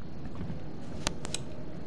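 A latch clicks.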